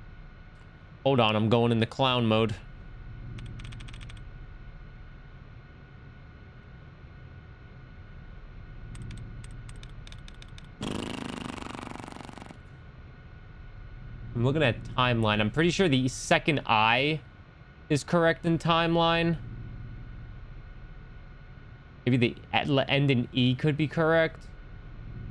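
A young man speaks casually and close into a microphone, in short bursts with pauses.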